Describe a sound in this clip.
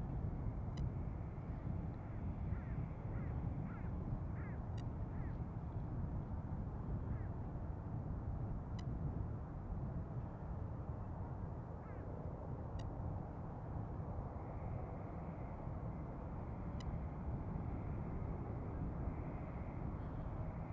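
A jet airliner's engines roar steadily as it approaches overhead.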